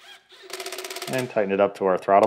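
A ratchet wrench clicks rapidly.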